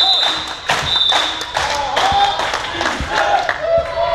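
A volleyball thuds as it is hit.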